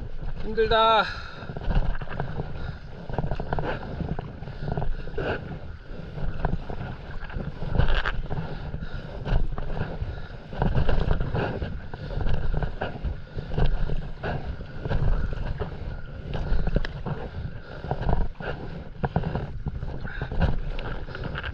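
Water splashes and laps against the bow of a moving paddleboard.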